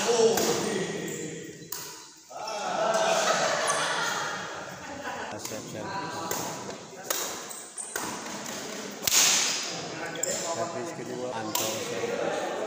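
Shuttlecocks are struck with rackets in sharp pops.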